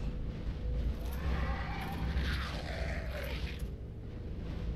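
Winged creatures screech loudly.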